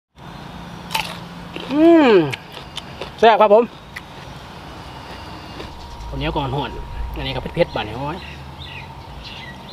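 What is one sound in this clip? A man bites and crunches on raw vegetables close by.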